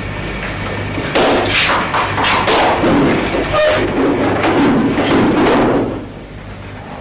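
A woman speaks loudly and with emotion nearby.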